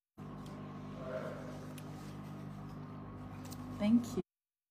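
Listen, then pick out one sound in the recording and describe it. A young woman speaks softly, close to a phone microphone.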